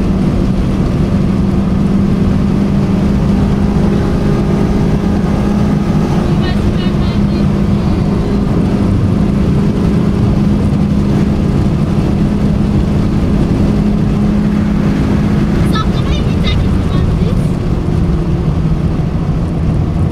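Wind and road noise rush past the car.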